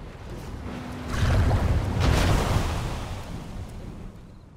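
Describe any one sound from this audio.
Water splashes and churns loudly as a swimmer bursts out.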